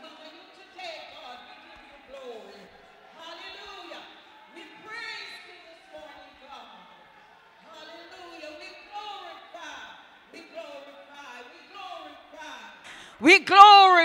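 Several women sing together through microphones in a large hall.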